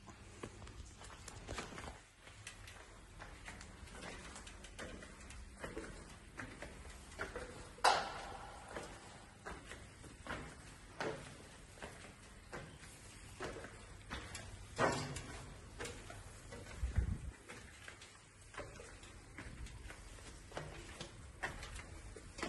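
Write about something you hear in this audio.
Footsteps clank on metal stair steps in a steady climbing rhythm.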